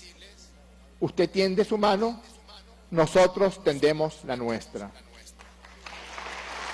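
A man speaks forcefully into a microphone in a large hall.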